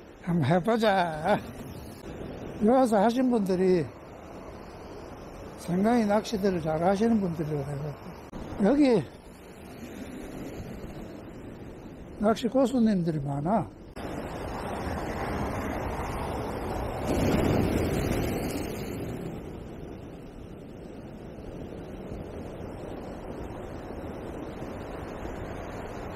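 Waves crash and wash over a pebble shore.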